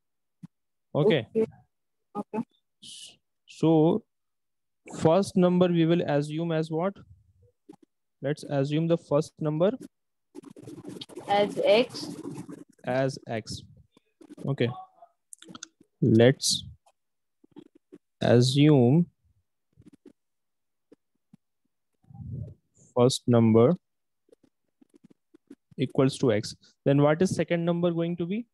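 A young man speaks calmly into a close microphone, explaining in short phrases with pauses.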